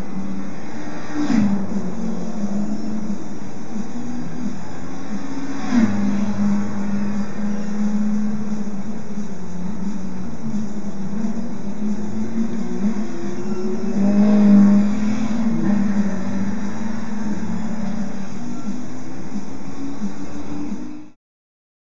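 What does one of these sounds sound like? Racing car engines roar steadily at high speed.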